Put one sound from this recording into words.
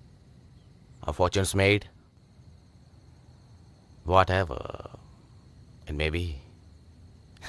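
A man speaks in short, tense phrases close by.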